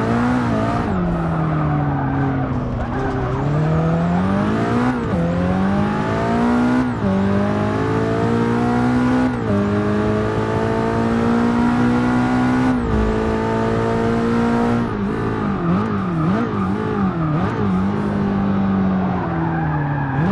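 A racing car engine roars, rising in pitch through each gear and dropping sharply at each gear change.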